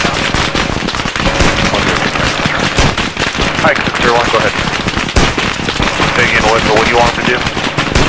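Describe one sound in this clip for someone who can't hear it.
Rifles fire in rapid, loud bursts.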